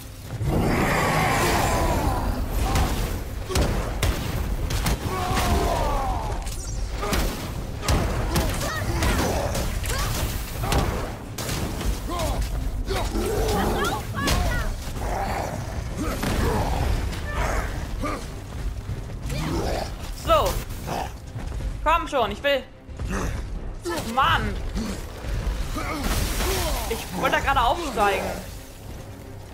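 A giant creature roars and grunts loudly.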